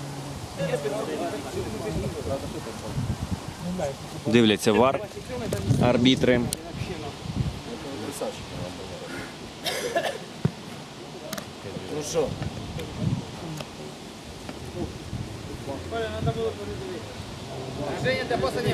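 Men talk close by.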